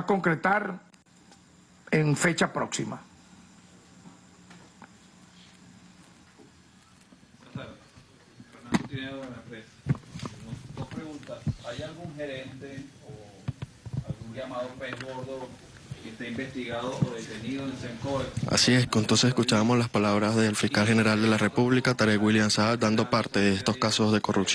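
A man speaks calmly into a microphone, in a formal tone, with short pauses.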